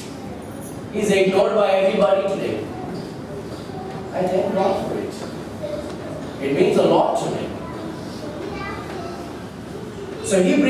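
A man speaks calmly into a microphone in a slightly echoing room.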